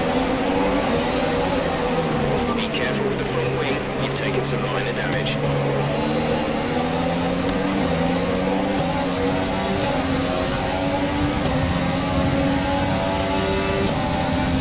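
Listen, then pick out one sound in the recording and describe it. A racing car engine whines loudly, dropping in pitch as it brakes and then rising as it speeds up through the gears.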